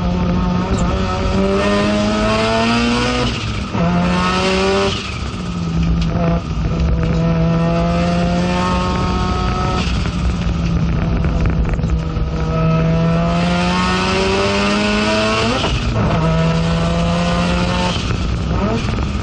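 A race car engine roars loudly from inside the cabin, rising and dropping in pitch as it shifts gears.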